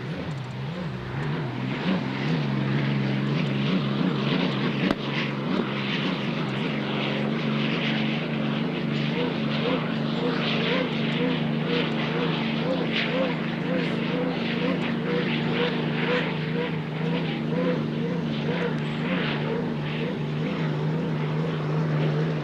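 A racing boat's engine roars loudly as the boat speeds across the water.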